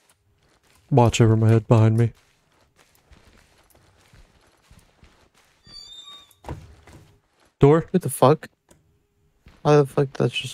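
Footsteps tread slowly across a hard floor.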